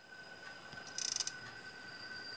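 A monitor panel flips down with a short electronic rustle.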